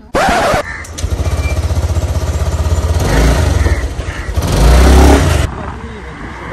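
Wind roars past while riding a scooter.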